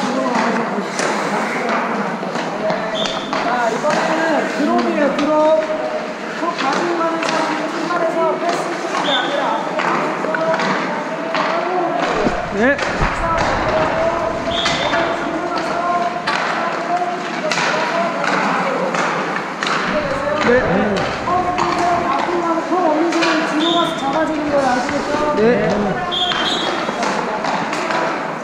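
Hockey sticks clack against pucks and the ice.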